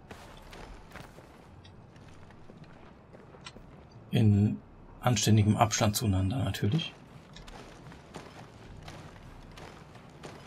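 Footsteps crunch on loose dirt.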